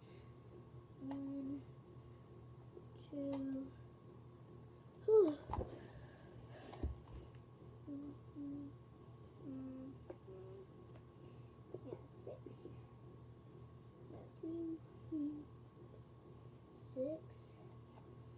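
A young boy speaks calmly and close by.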